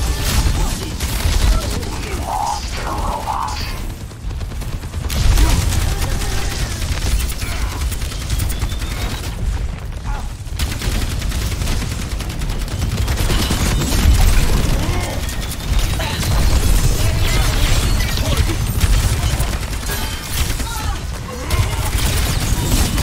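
Game gunfire and explosions crackle and boom.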